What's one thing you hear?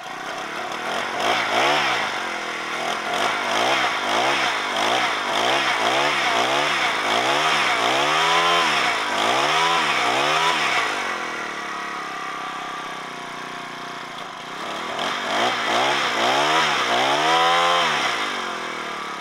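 A small petrol engine revs up and down again and again.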